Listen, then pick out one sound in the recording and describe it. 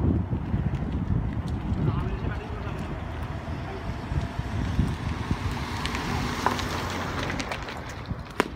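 A car engine rumbles as a car drives past close by.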